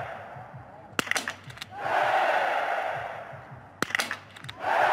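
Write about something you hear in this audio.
A rifle fires sharp single shots that ring out in the open air.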